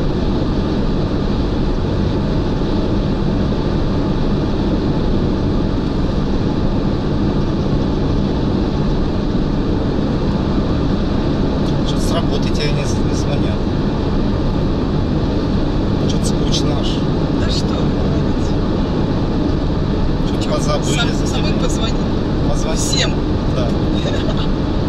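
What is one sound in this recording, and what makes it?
A car engine hums and tyres roar steadily on a highway.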